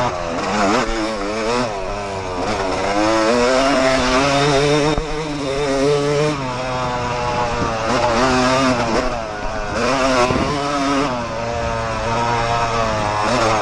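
A dirt bike engine revs hard, rising and falling in pitch as it shifts gears.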